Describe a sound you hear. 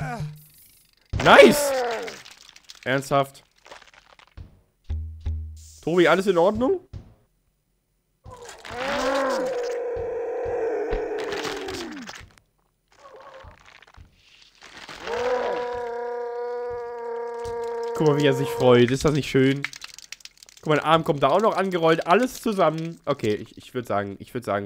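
A young man talks and exclaims loudly with animation into a microphone.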